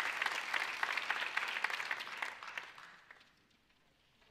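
An audience applauds in a large hall and fades away.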